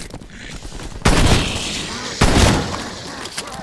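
Heavy gunshots boom loudly.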